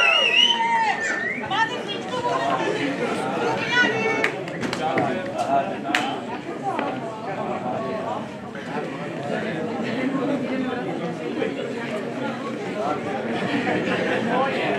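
A crowd of men and women chatter loudly in an echoing hall.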